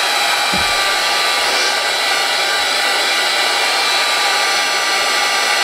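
A hair dryer blows with a steady, loud whoosh and a high whine.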